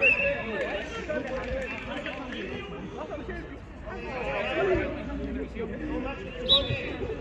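Young men talk and call out to each other outdoors.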